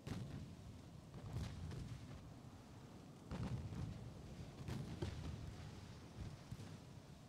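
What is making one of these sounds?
Heavy naval guns boom repeatedly in the distance.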